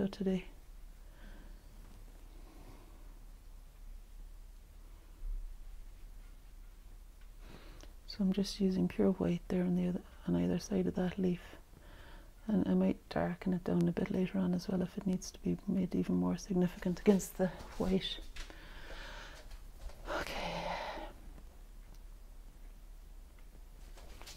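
A paintbrush softly dabs and strokes on canvas.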